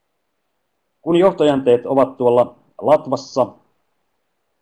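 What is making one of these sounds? A man speaks calmly over an online call, close to a headset microphone.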